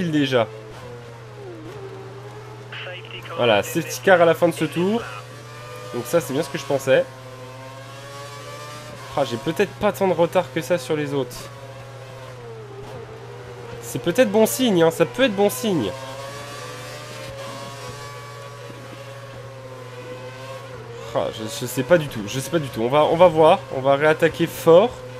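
A racing car engine whines steadily, its pitch rising and falling through gear changes.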